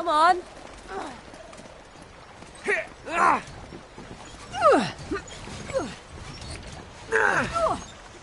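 Fast water rushes and churns.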